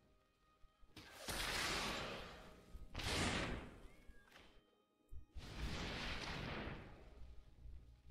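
Magical spell effects whoosh and swell, then fade, several times.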